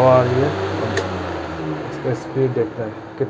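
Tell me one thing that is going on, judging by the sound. A fan's control knob clicks as it is turned.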